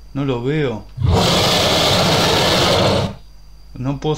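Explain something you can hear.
A creature lets out a loud, harsh roar.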